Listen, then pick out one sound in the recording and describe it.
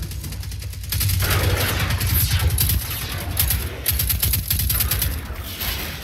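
Rapid gunfire rattles.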